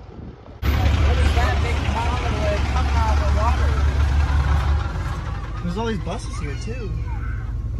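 A man talks loudly through an open vehicle window.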